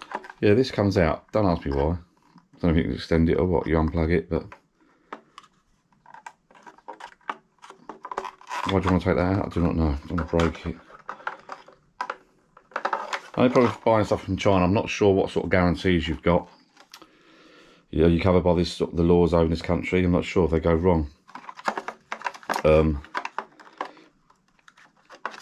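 Hands turn a hard plastic casing over, with light knocks and rattles.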